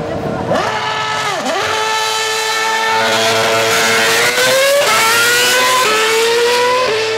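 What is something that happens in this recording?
A racing car roars past close by.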